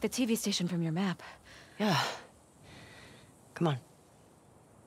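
A young woman speaks briefly and calmly.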